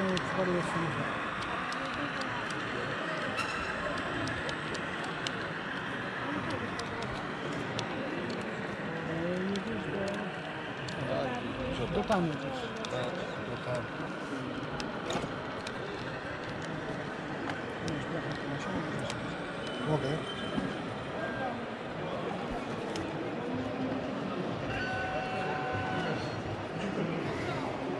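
A model train rolls and clicks along its track.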